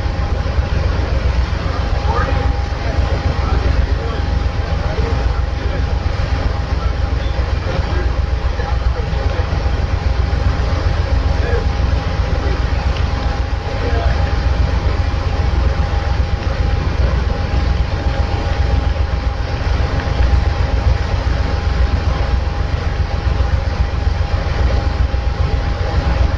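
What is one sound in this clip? A stationary train idles with a steady low hum.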